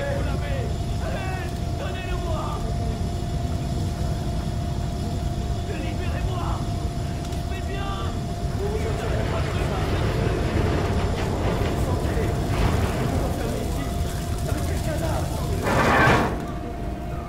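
A fire roars steadily in a furnace.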